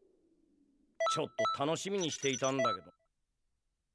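A short musical jingle rings out.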